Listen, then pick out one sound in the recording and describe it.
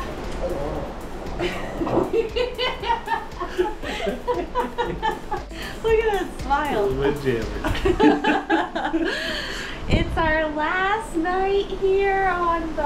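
A young woman talks and laughs with animation close by.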